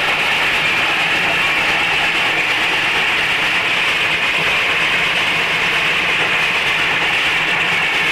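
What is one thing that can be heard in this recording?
A steam locomotive hisses steadily nearby.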